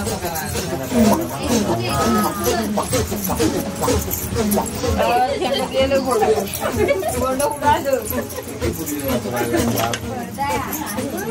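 Several women sing and call out in lively voices close by.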